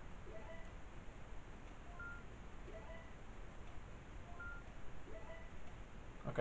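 Short electronic game tones chime in a repeating pattern.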